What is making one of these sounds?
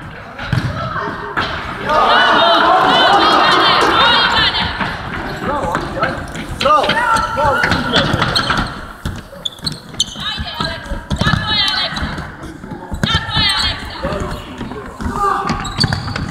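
Children shout and cheer loudly in a large echoing hall.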